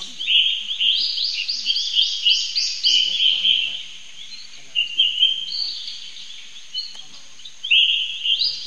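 A young monkey chews on a leaf.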